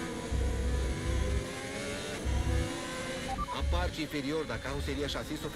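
A racing car engine roars at high revs and shifts up through the gears.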